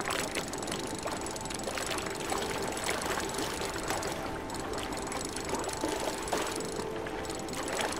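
A fishing reel clicks and whirs as a line is reeled in.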